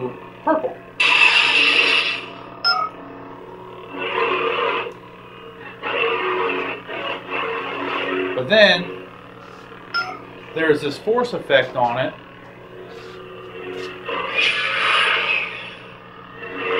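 A toy light sword swooshes as it is swung.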